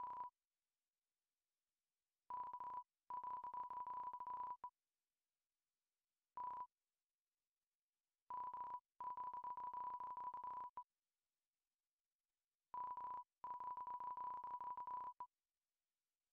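Short electronic blips chatter rapidly in bursts as game text types out.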